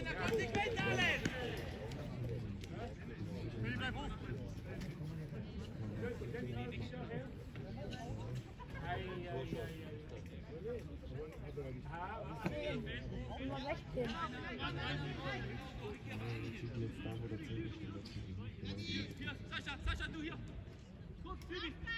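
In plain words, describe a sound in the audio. Young men shout to each other across an outdoor sports pitch.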